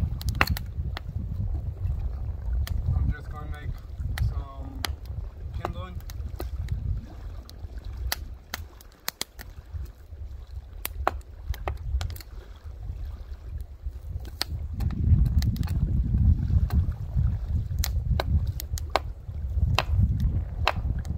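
A knife taps and splits wood with sharp knocks.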